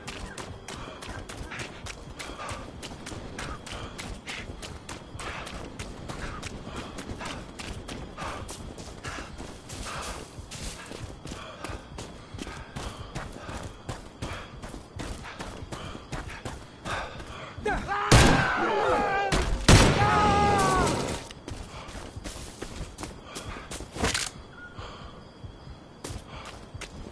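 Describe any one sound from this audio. Footsteps crunch through leaves and undergrowth.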